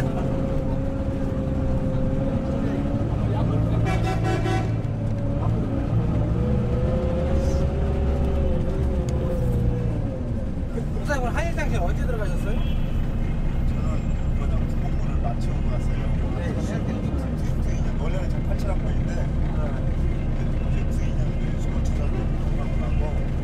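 Street traffic hums and murmurs all around outdoors.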